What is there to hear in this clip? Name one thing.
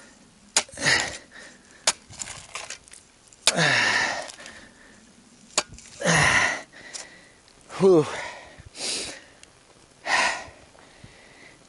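A shovel scrapes and digs into stony soil.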